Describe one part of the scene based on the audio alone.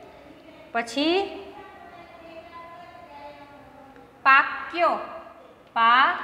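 A woman speaks loudly in a sing-song voice, with a slight echo.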